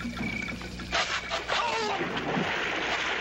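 Something plunges into the water with a loud splash.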